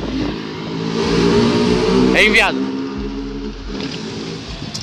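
A small motorcycle engine revs loudly nearby.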